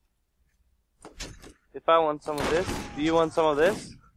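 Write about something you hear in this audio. A sniper rifle fires a loud shot.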